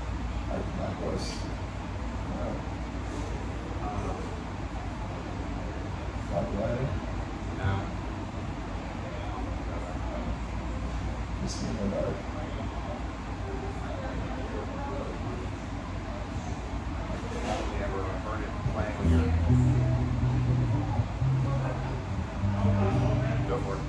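A man talks into a microphone through loudspeakers.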